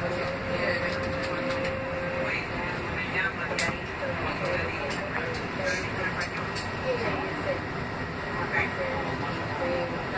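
Train wheels screech on the rails.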